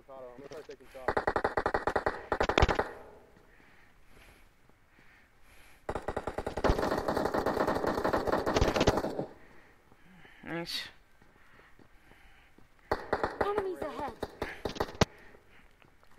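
Rapid rifle gunfire rattles in short bursts.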